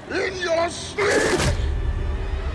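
A blade whooshes sharply through the air.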